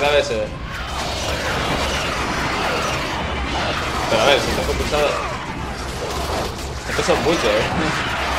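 Fiery blades whoosh and slash through the air.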